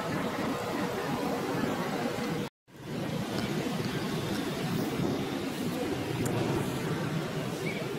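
A young monkey chews and nibbles on a stick.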